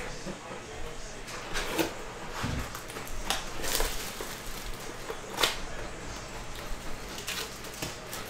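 Plastic wrapping crinkles and tears as a box is opened by hand.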